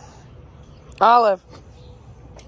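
A dog lets out a short high yelp.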